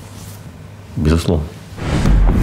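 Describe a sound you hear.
A younger man speaks a short line calmly.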